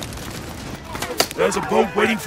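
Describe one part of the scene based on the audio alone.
A gun fires sharp shots.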